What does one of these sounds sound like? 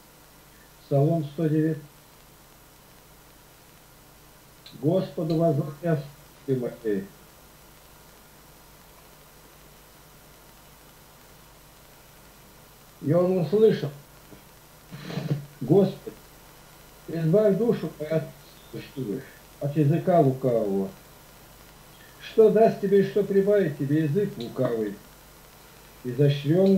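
An elderly man reads aloud slowly, heard through a computer microphone on an online call.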